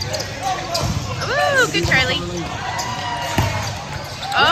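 A volleyball thumps off a player's arms and hands.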